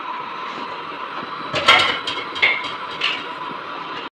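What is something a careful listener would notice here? Onions sizzle in hot oil.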